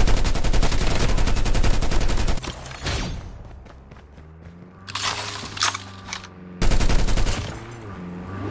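Heavy guns fire in rapid bursts.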